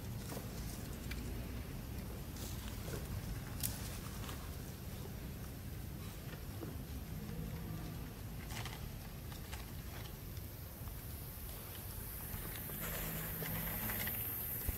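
Dry leaves rustle as a baby monkey squirms on the ground.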